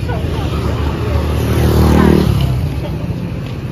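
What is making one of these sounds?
A motorbike passes by loudly on a street.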